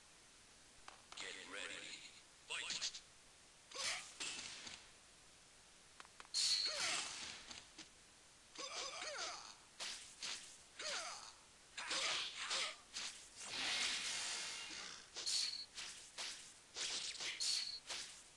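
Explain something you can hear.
Fighting game punches and kicks land with sharp, rapid thwacks.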